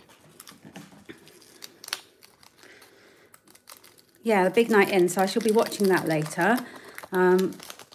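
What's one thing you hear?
A small plastic bag crinkles and rustles as it is handled.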